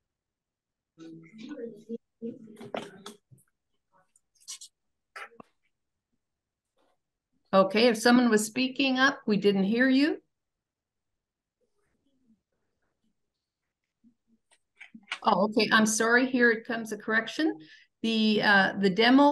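A woman speaks through an online call, pausing between phrases.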